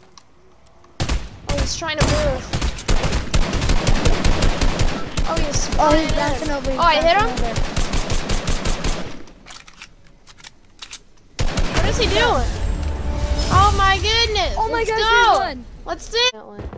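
An assault rifle fires in rapid bursts.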